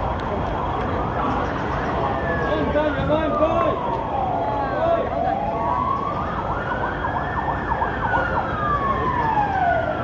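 A siren wails nearby, rising and falling.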